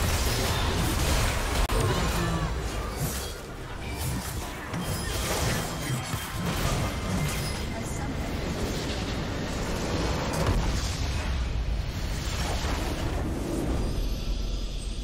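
Game combat effects clash and burst rapidly.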